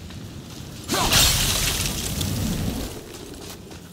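A loud burst erupts nearby.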